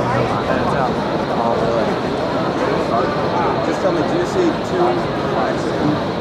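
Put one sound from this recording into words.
An elderly man talks animatedly close by.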